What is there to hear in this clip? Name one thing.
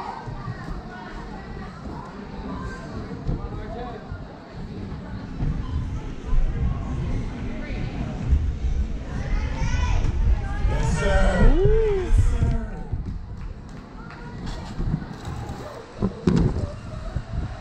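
Feet thump on padded mats during running and jumping.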